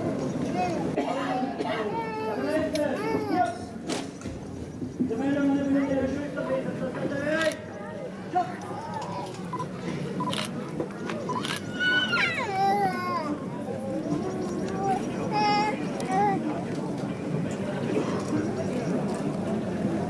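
A large crowd murmurs and talks outdoors.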